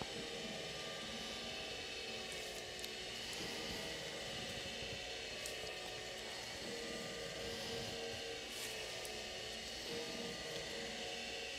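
Hands press down firmly on a person's back.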